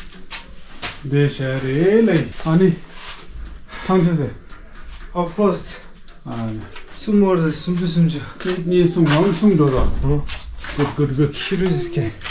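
A young man speaks with animation close by.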